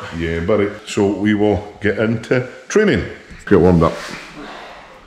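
A man talks close by with animation.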